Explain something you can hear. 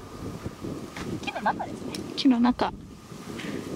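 A young woman speaks lightly nearby.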